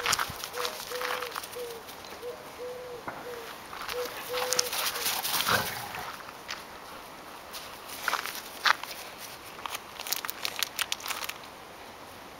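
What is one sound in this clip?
Dogs run and scuffle across grass.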